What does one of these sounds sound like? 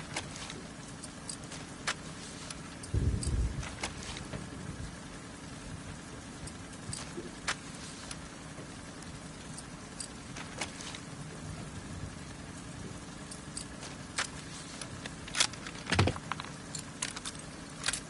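Metal parts of a gun click and clack as it is handled.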